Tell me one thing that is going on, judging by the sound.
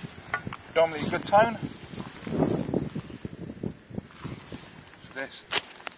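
A shovel digs into grassy soil.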